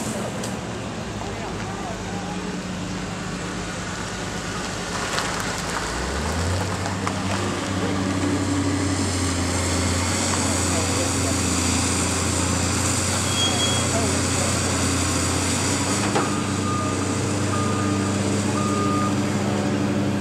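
A heavy diesel engine rumbles steadily nearby and revs up louder.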